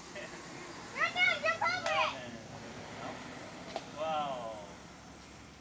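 A young girl talks and exclaims.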